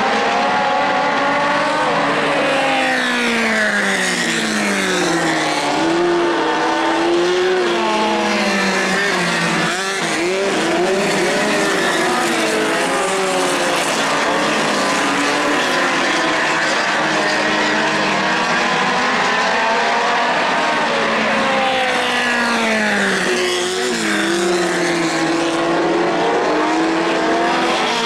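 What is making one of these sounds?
Racing car engines roar and whine, rising and falling in pitch as the cars speed past.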